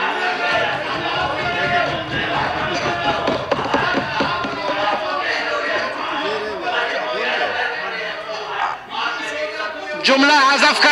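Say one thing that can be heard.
A man shouts angrily in a large echoing hall.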